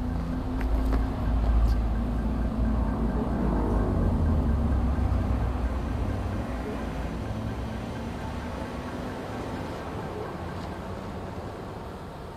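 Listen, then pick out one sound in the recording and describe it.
Cars drive past with a low engine rumble.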